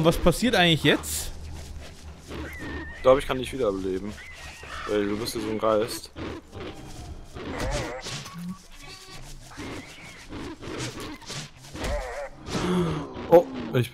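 Blows land with sharp thuds during a scuffle.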